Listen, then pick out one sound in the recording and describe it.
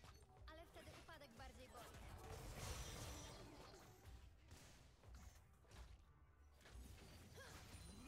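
Video game spell effects whoosh and clash.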